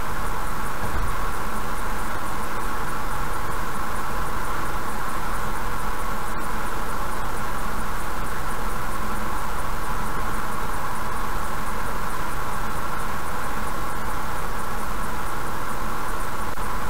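Tyres and engine hum steadily as a car drives along a highway.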